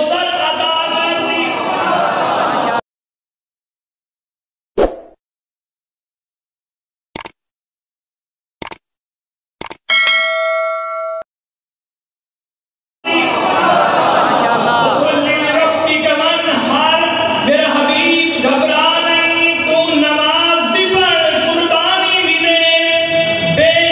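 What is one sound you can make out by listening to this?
A man speaks with animation through a microphone and loudspeakers.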